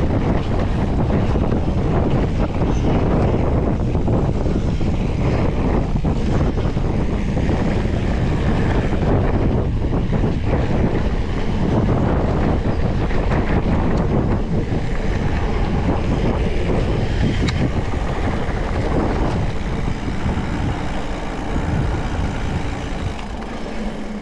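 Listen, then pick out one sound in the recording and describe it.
Wind rushes and buffets loudly past the rider.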